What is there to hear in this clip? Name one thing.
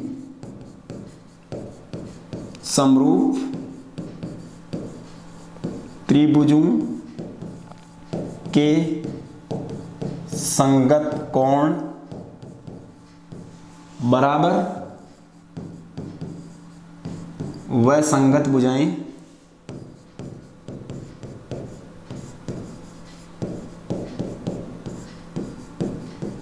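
A marker squeaks and taps faintly on a board.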